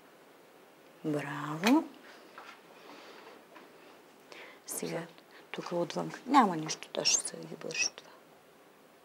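A young girl speaks nearby in short bursts.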